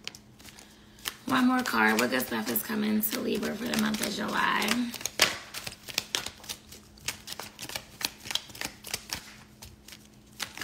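Paper packets crinkle and rustle in hands.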